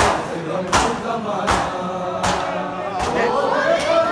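A crowd of men beat their chests in a slow, steady rhythm.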